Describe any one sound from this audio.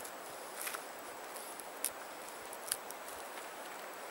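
A knife scrapes at tree bark with short sharp scratches.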